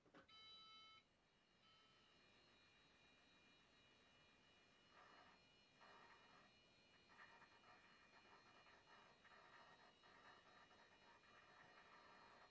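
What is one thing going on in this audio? A computer hums with a faint high whine.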